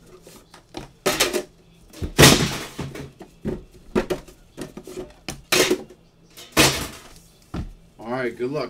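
Small cardboard boxes thump and knock as they are stacked.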